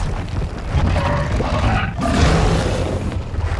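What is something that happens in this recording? A fiery blast bursts and crackles.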